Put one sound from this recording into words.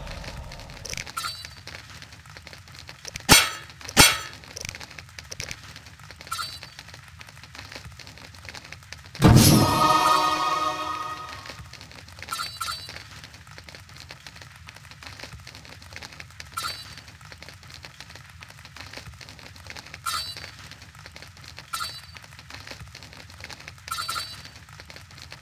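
Short soft ticks sound as menu items are hovered.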